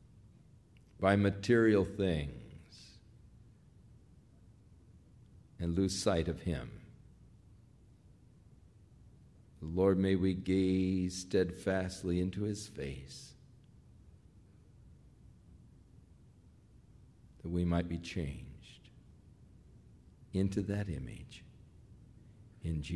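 An elderly man speaks through a microphone in short, emphatic phrases separated by pauses.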